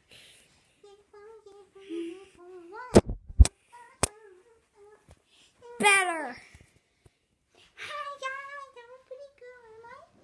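A young boy sings loudly and playfully close by.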